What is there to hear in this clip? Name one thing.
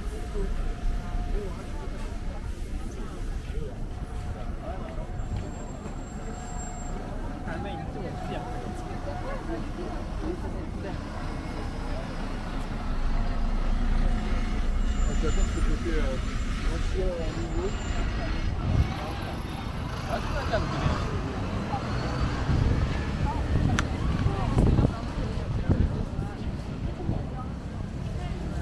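Traffic rumbles along a road close by.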